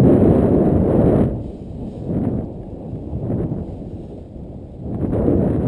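Wind rumbles in gusts against the microphone outdoors.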